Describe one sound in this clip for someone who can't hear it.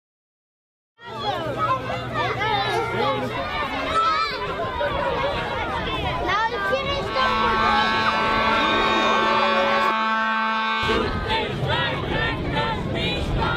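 A crowd of children chatters and shouts excitedly outdoors.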